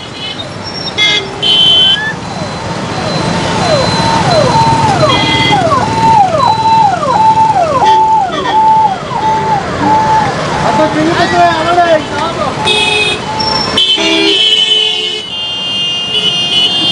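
Vehicle horns honk in short blasts.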